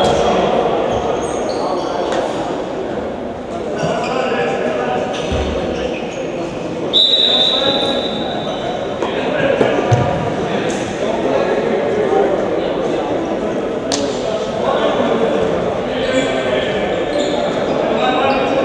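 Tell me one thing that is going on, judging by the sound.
Voices of men and boys call out and murmur in a large echoing hall.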